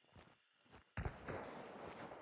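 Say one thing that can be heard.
A rifle shot cracks loudly.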